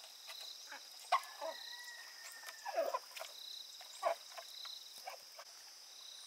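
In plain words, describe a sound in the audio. Ducks quack close by.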